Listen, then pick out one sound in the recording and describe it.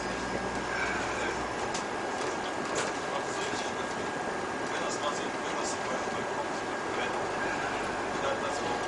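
A diesel bus engine hums while driving.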